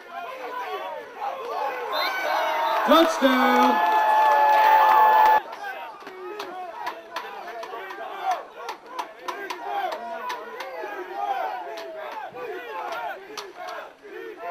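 A crowd of spectators shouts and cheers in the open air.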